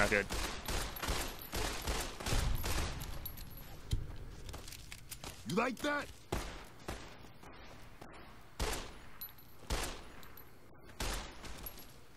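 Pistol shots ring out sharply, one after another.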